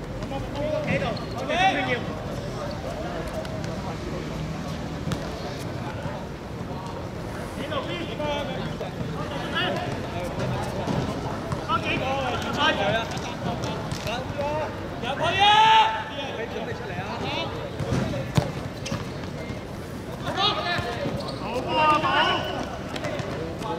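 Young men shout and call to each other across an outdoor football pitch.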